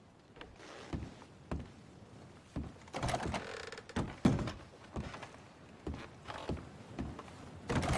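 Heavy footsteps thud slowly across a wooden floor.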